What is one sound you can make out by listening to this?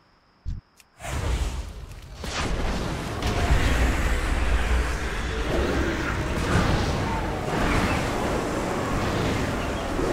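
Combat sound effects of spells and blows play in quick bursts.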